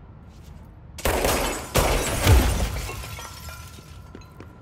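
An explosion bursts loudly and rumbles away.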